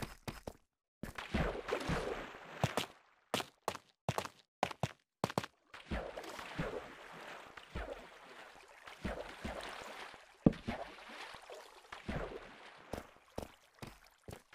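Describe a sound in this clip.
Water flows and trickles.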